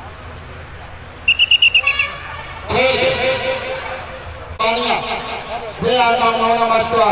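A crowd murmurs and calls out outdoors.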